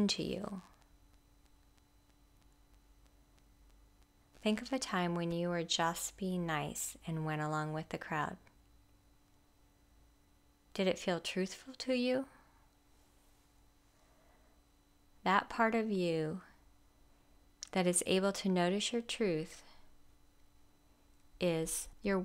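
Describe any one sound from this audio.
A woman speaks calmly and softly in short phrases with long pauses.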